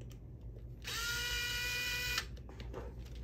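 An electric screwdriver whirs briefly.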